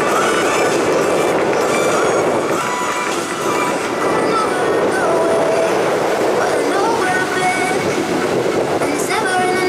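Water sprays and hisses under a water ski.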